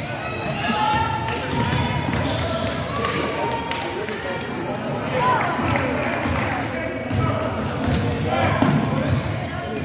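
Spectators call out and cheer in an echoing gym.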